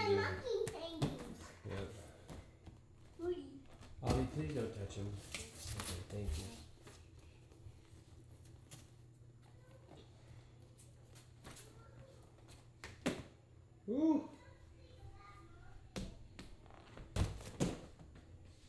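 Young children's bare feet thump on padded boxes as they jump.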